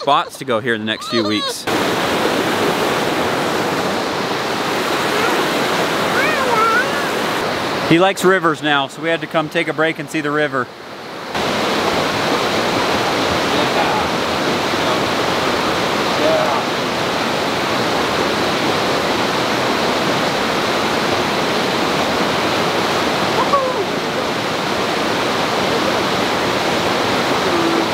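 A river rushes loudly over rocks.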